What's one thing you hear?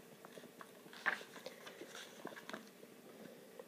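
A book page rustles as it is turned.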